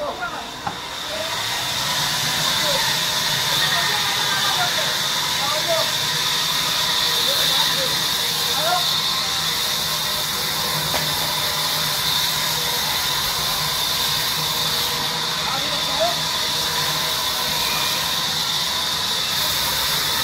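A large saw whines loudly as it cuts through a log.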